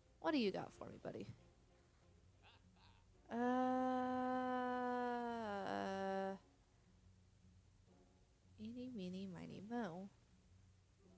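A young woman speaks playfully into a close microphone.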